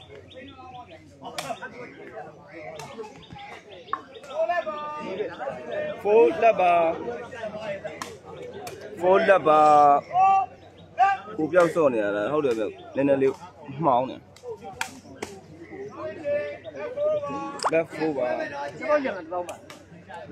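A crowd of men and boys chatters and shouts outdoors.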